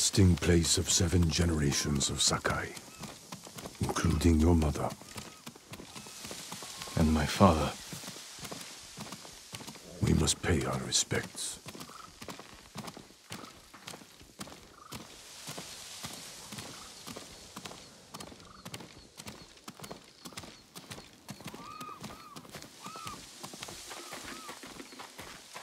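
Footsteps crunch slowly on a gravel path.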